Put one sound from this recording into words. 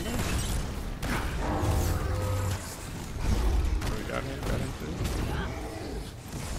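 Video game fight effects thump and whoosh.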